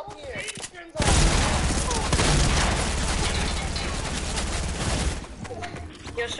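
Gunfire rattles rapidly in a burst.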